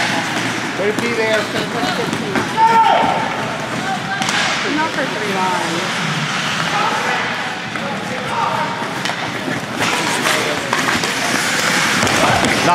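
Spectators and players shout in an echoing rink.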